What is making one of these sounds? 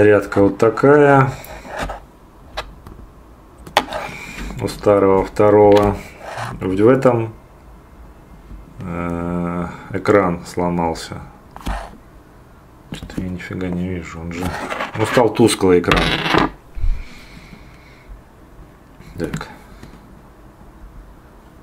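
Small plastic parts click and snap together under fingers.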